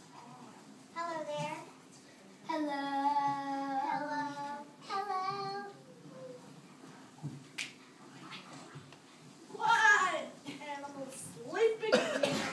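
Young children sing in high voices in an echoing hall.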